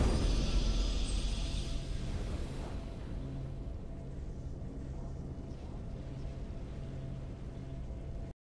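A triumphant game fanfare rings out and then fades to a quiet, steady drone.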